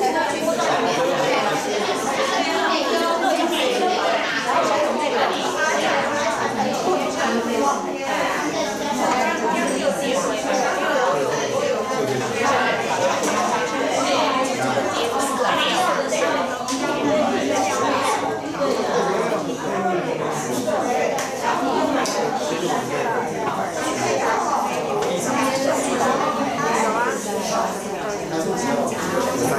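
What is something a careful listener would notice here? A woman speaks steadily through a microphone.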